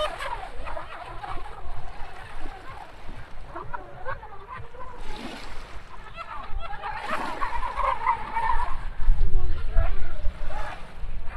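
A small boat motor whines as it speeds across the water.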